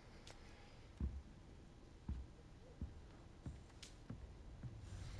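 Footsteps knock softly on a wooden floor.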